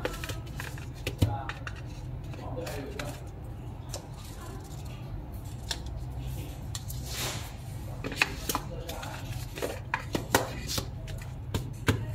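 A box taps and knocks against a table.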